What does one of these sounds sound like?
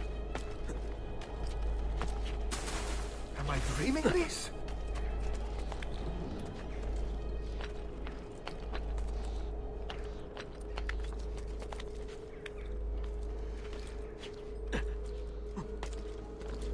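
Footsteps patter on stone as a figure runs.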